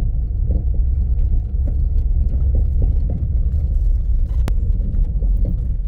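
A vehicle's body knocks and jolts over bumps.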